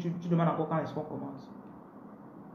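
A young woman speaks briefly and calmly, close to the microphone.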